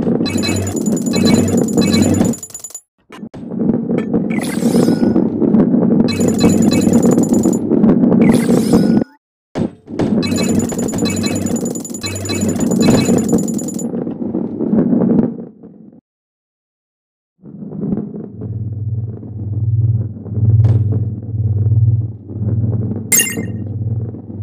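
A heavy ball rumbles steadily as it rolls along a track.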